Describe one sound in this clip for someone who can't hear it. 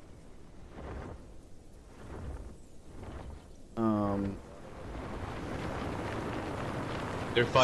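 A large flying creature's wings beat with deep whooshes.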